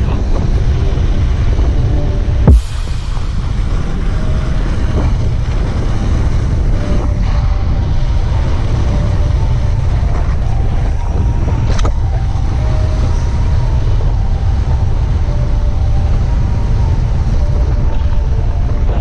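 Wind roars loudly past a helmet microphone as a mountain bike speeds downhill.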